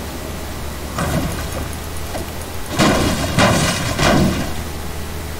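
A pickaxe clangs against a metal truck several times.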